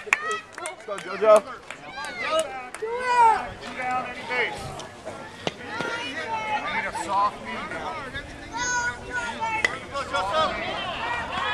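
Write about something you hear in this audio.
Young boys shout and call out across an open field.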